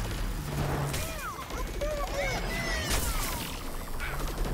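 Energy blasts crackle with bright whooshing bursts.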